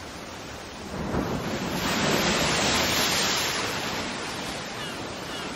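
Waves crash against rocks and spray.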